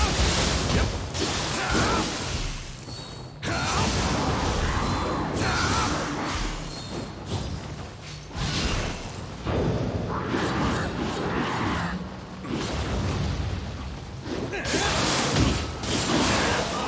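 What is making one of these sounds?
Crackling magic blasts burst loudly.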